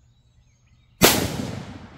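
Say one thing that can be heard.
A rifle fires a single loud shot outdoors.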